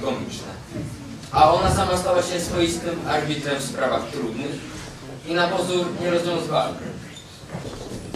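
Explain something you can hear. A boy reads aloud clearly.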